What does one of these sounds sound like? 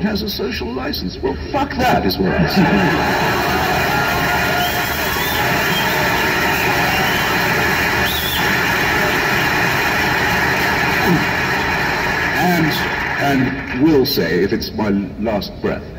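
A large vehicle's engine drones steadily.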